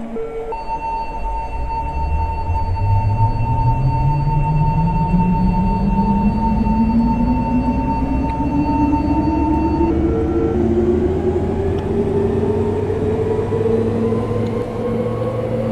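An electric train motor hums and whines, rising steadily in pitch as the train speeds up.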